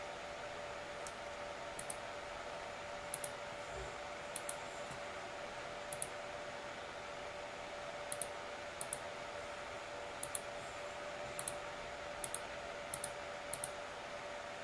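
A computer mouse clicks now and then.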